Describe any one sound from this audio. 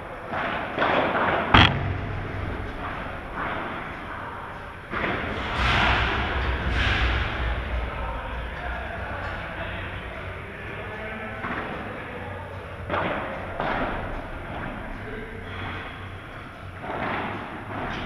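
Men call out to each other in a large echoing hall.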